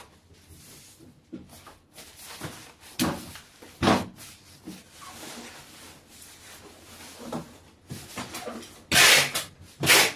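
Hands tap and press on a cardboard box.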